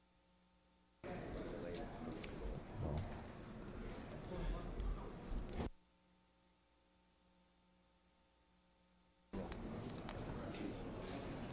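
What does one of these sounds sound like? A man speaks calmly over a loudspeaker in a large echoing hall.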